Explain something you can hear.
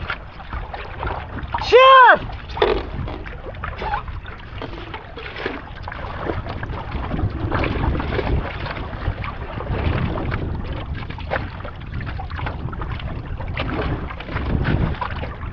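Wind blusters outdoors across the water.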